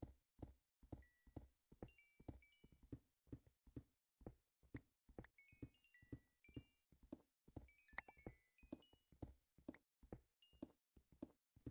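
Dropped blocks are picked up with quick, high popping blips.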